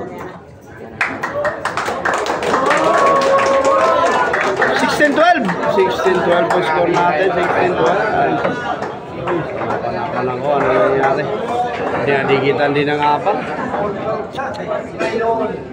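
A crowd of men and women chatters loudly and cheers nearby.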